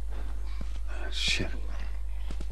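A man mutters a curse under his breath.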